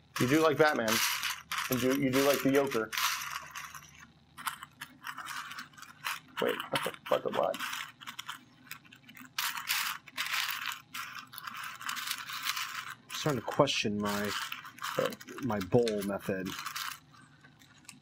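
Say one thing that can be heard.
Plastic toy bricks click and rattle.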